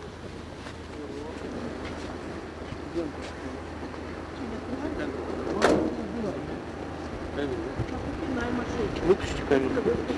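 A man speaks through a car window.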